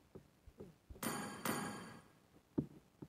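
A short electronic notification chime sounds.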